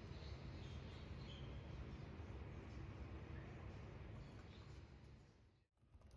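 A plastic tube crinkles in a hand.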